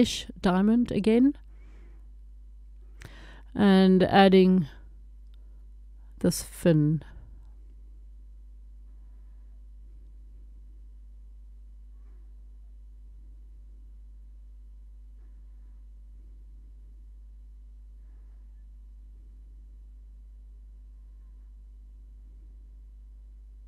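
A small rotary engraving tool hums steadily as it grinds against glass.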